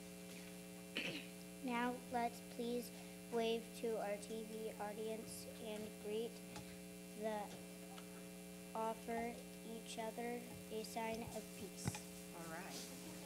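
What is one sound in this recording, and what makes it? A young girl reads out into a microphone.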